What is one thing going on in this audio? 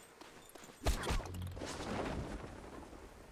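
A parachute snaps open with a loud whoosh.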